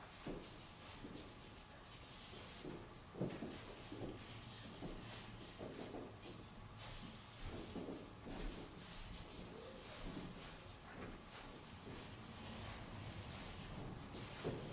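A piano plays softly in an echoing room.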